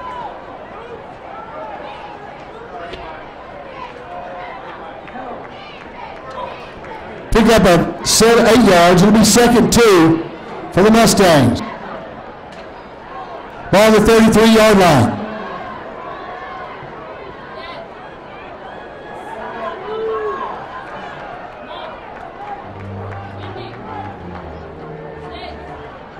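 A large crowd murmurs and cheers in an open stadium.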